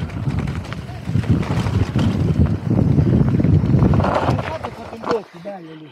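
Bicycle tyres rumble and rattle over a bumpy dirt trail.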